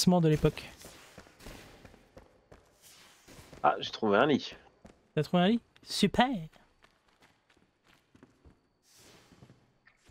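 Footsteps tread slowly on a wooden floor.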